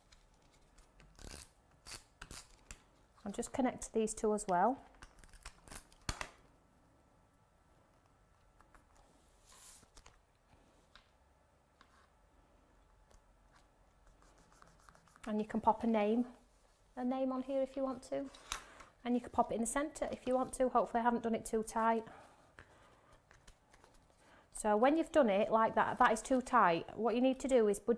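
Card and paper rustle and tap as they are handled.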